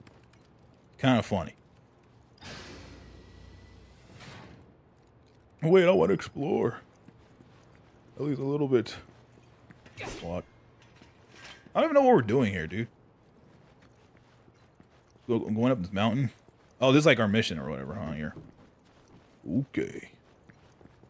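A young man talks with animation into a microphone, in short bursts.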